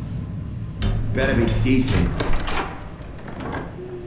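A heavy door creaks open.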